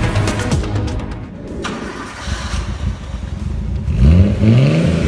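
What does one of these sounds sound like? A car engine idles with a deep exhaust rumble.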